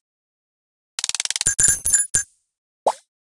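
Coins jingle rapidly as a game score counts up.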